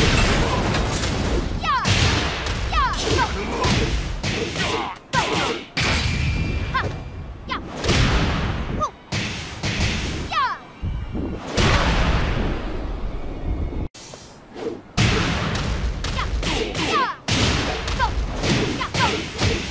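Punches and kicks land with heavy thuds and bursts of impact.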